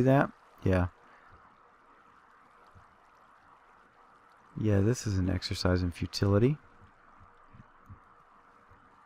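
Water flows and gurgles steadily.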